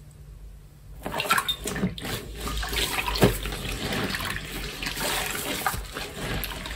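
Hands squish and squeeze a soaked sponge in foamy liquid.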